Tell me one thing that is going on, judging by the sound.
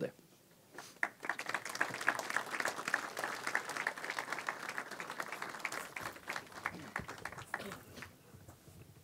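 An audience applauds outdoors.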